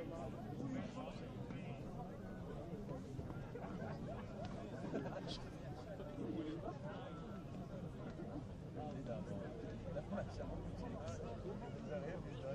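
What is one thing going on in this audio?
A crowd of spectators chatters and murmurs outdoors nearby.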